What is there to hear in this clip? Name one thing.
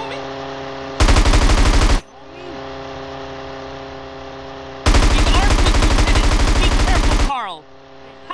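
Machine guns fire in loud, rapid bursts.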